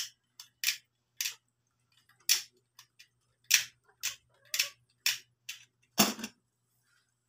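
Small scissors snip with sharp clicks.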